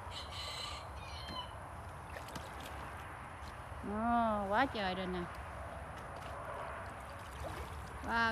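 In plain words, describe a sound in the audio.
Water sloshes and splashes around a small boat.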